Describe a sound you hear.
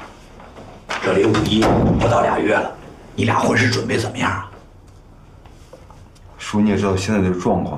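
An elderly man speaks with animation nearby.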